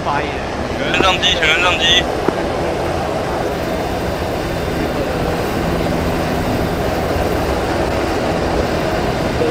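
A helicopter's engine whines nearby.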